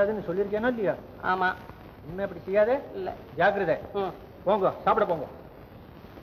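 A middle-aged man speaks loudly and forcefully.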